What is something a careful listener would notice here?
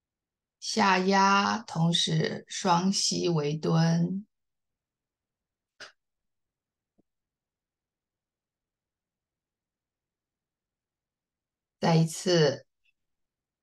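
A woman speaks calmly and clearly, as if instructing, through a microphone.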